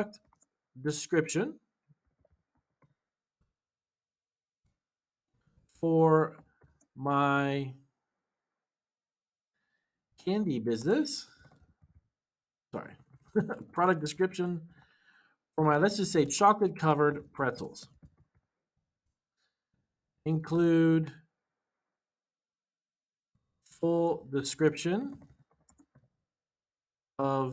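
A man speaks calmly and closely into a microphone, in short phrases with pauses.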